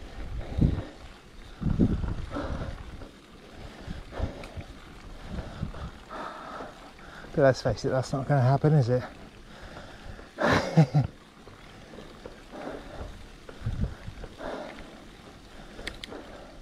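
Bicycle tyres roll and crunch over a rough lane.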